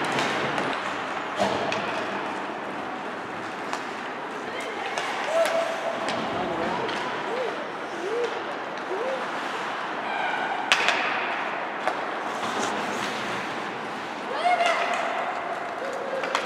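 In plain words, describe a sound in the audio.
A crowd murmurs and calls out in an echoing arena.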